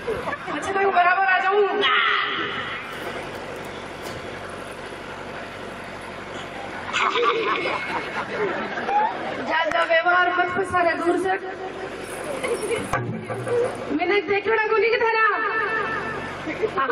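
A man sings through a loudspeaker.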